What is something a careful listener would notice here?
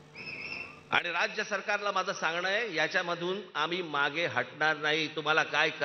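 A man gives a speech forcefully through loudspeakers.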